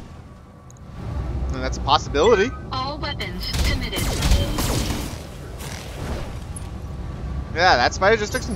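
Laser cannons fire in rapid bursts with loud booming blasts.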